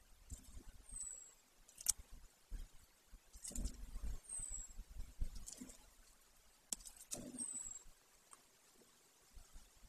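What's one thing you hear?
An eagle tears at prey, with soft knocks and rustling.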